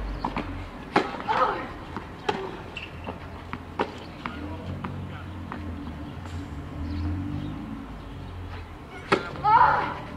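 A tennis racket strikes a ball on a serve with a sharp pop.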